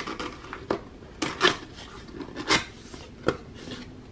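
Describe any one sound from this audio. A cardboard flap tears open.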